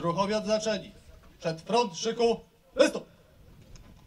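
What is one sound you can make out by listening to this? A man shouts commands loudly through a microphone and loudspeakers outdoors.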